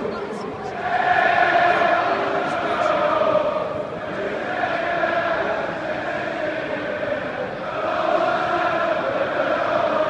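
A large stadium crowd chants and sings loudly in unison, swelling in waves.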